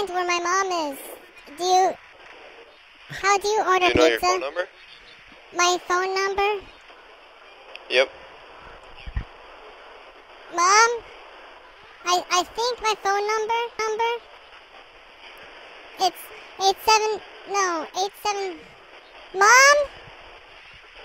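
A young boy talks with animation, close by.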